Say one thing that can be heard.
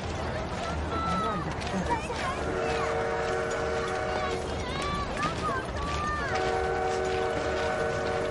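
A crowd murmurs and shuffles outdoors.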